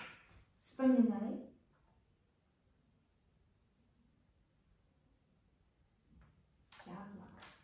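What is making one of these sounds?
A young woman speaks gently and with animation, close by.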